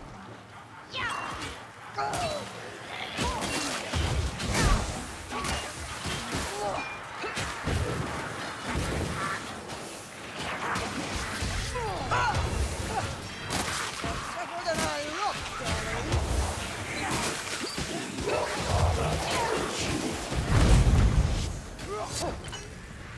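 Creatures screech and snarl in a horde.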